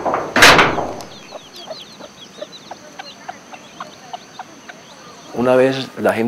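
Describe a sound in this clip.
Chicks peep in short high chirps outdoors.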